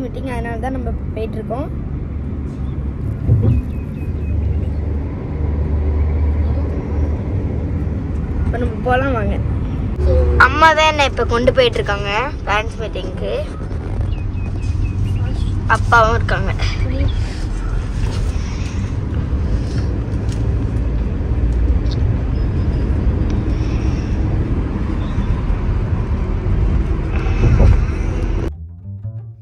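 A car's engine and tyres rumble steadily from inside the car.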